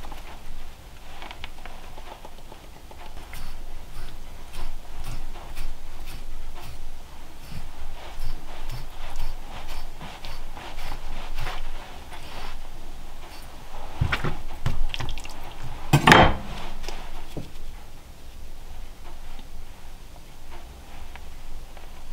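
Salt grains patter onto meat.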